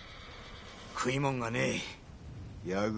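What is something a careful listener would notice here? A second man asks a question in a low, gruff voice, close by.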